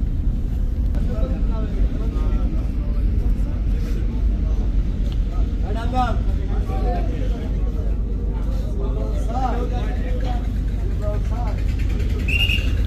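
Men talk and call out at a distance below.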